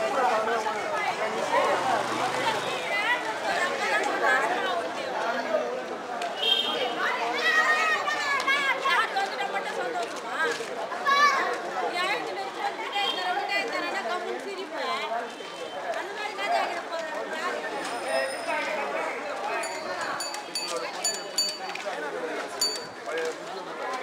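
Many men and women talk and call out at once outdoors.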